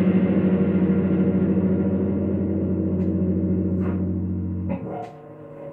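An electric bass guitar plays a low, sustained note that rings and then is cut off.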